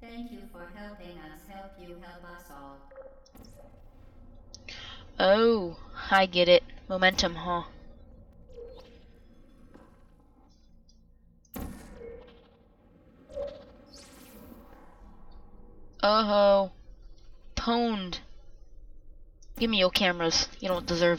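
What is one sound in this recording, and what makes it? A portal gun fires with a short electronic zap.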